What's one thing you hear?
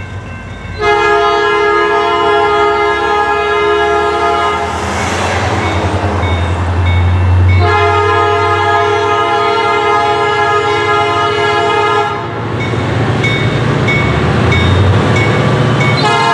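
Cars drive past on a road close by.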